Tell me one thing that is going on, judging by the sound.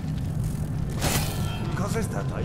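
Electric sparks crackle and fizz.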